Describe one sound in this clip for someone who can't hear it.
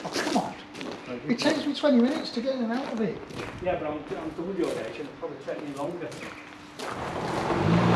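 Two men talk calmly nearby outdoors.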